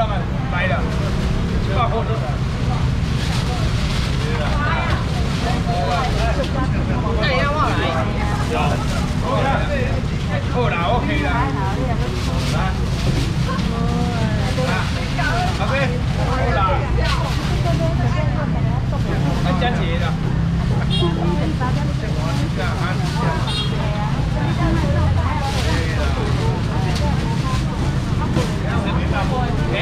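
A busy crowd chatters loudly all around, outdoors.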